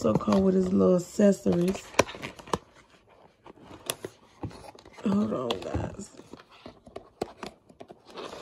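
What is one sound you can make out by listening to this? Paper and cardboard rustle and tap as a box is handled.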